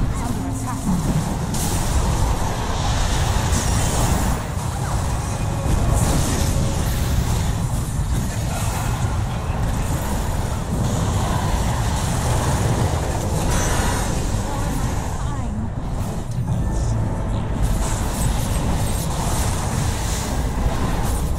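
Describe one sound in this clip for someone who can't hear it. Spell effects blast and crackle in a fierce battle.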